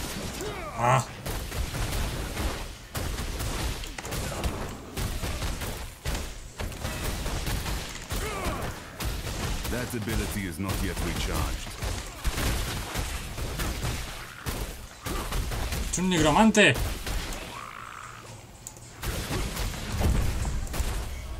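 Game combat sounds clash and crackle with spell blasts.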